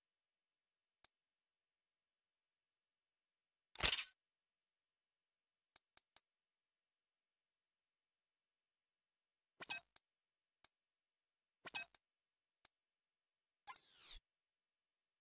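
Short electronic menu clicks and swooshes sound now and then.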